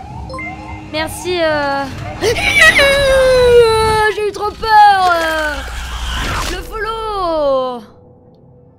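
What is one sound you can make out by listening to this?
A young woman screams loudly into a close microphone.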